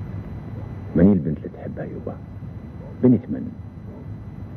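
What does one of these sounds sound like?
An elderly man speaks in a low, grave voice, with pauses.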